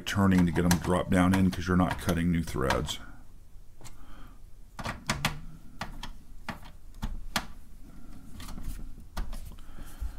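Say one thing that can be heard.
A screwdriver clicks and scrapes against metal screws.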